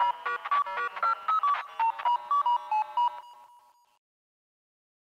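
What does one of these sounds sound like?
Bouncy electronic chiptune music plays and then fades away.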